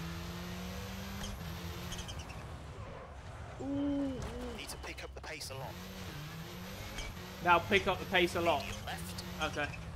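A rally car engine revs and shifts gears at speed.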